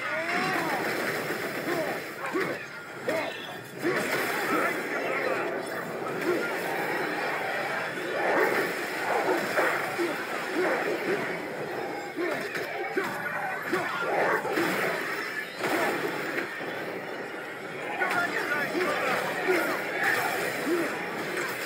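Weapons strike creatures in a fierce fight.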